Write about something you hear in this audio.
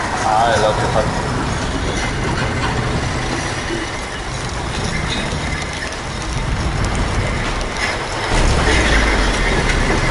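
Wind gusts and howls.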